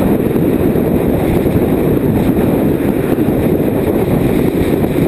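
Wind roars loudly across a microphone on a moving motorcycle.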